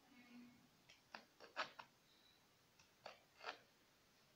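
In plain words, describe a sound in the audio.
A knife slices through a cucumber with crisp cuts.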